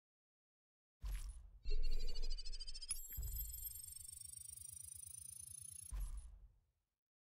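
A bright electronic chime swells and rises as a score counts up quickly.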